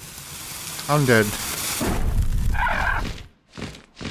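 Flames roar and whoosh in a burst of fire.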